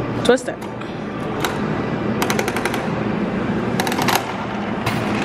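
A gumball machine crank clicks and ratchets as it is turned.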